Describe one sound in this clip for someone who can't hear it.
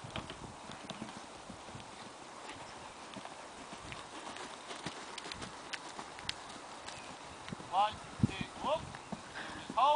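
Horse hooves thud on soft ground.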